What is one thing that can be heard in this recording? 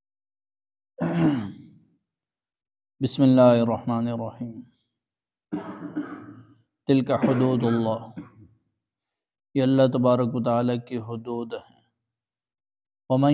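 A man recites in a slow, melodic chant close to a microphone, with pauses between phrases.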